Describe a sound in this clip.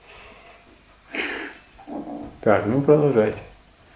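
An elderly man laughs softly.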